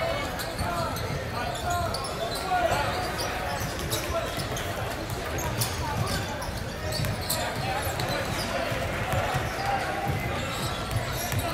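Players and spectators chatter in a large echoing gym.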